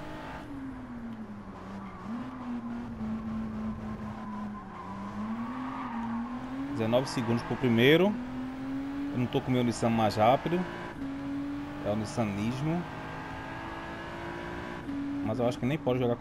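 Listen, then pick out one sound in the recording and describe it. A sports car engine drones steadily, revving up and dropping sharply with each gear change.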